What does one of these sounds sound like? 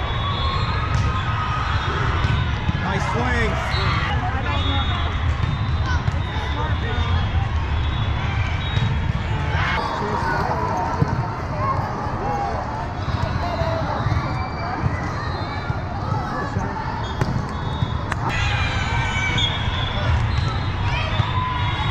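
A volleyball is struck with dull thuds.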